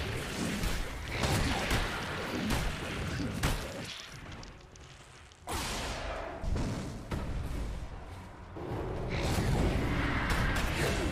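Spell effects burst and crackle in a battle.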